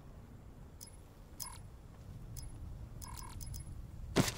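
Soft menu clicks tick a few times.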